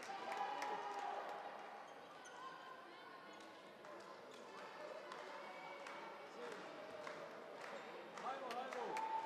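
Young women shout and call to each other on the court.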